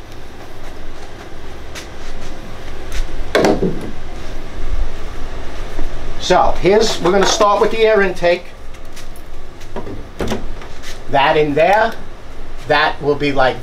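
Plastic pipe fittings knock and click together.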